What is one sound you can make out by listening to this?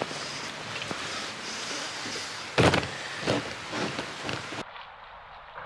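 Wind buffets against the microphone.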